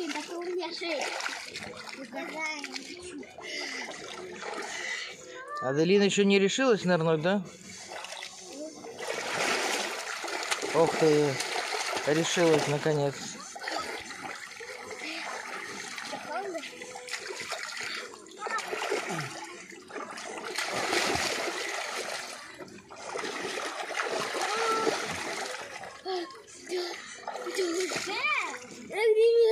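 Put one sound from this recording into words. Water splashes and sloshes in a small pool.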